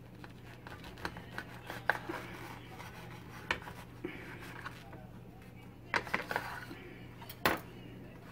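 A knife taps against a ceramic plate.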